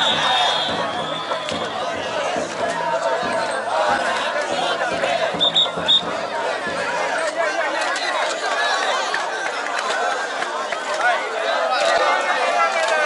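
A large crowd of men and women chatters and calls out outdoors.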